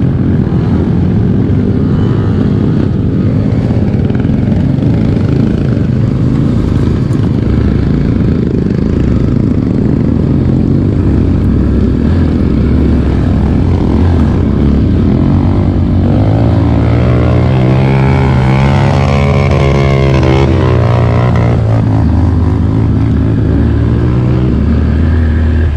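A dirt bike engine drones up close, revving harder as it climbs.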